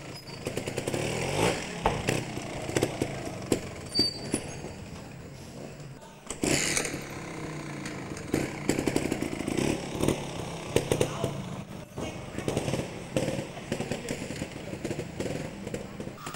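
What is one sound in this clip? A trial motorcycle engine idles and putters nearby.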